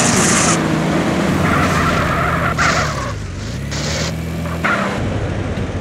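A car engine hums and revs as the car drives.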